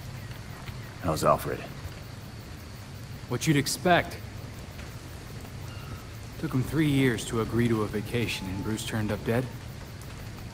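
A man speaks calmly, heard close.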